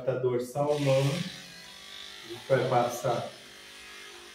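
An electric hair clipper buzzes steadily.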